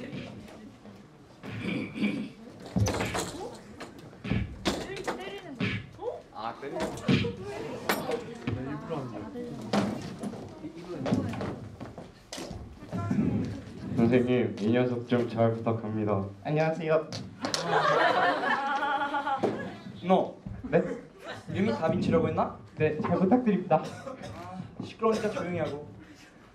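Young men speak with animation in a large echoing hall.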